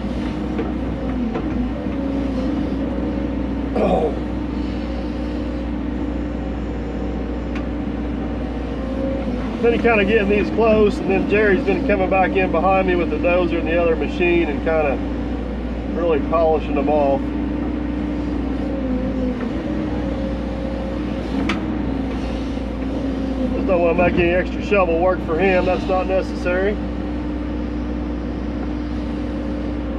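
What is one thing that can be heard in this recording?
An excavator bucket scrapes and digs into soil.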